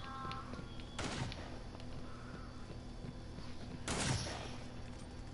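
Loud gunshots ring out with a short echo.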